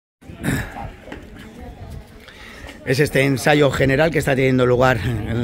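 Footsteps shuffle on a stone street.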